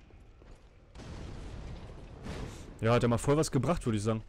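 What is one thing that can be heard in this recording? A fireball bursts with a roar.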